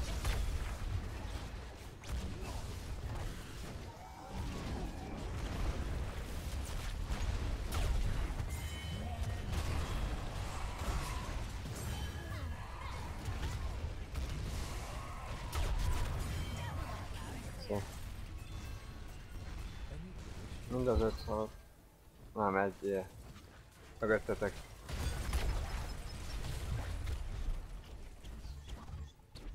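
Game battle effects crackle and boom.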